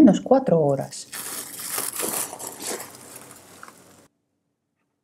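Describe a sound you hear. Plastic wrap crinkles as it is peeled back.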